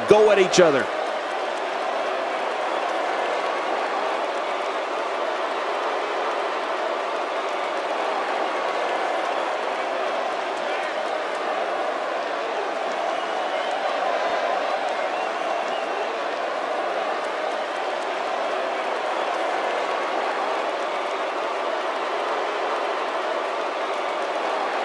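A large crowd cheers steadily in an echoing arena.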